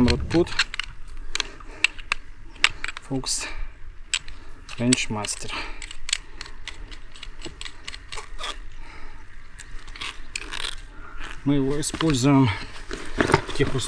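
Metal parts click and snap.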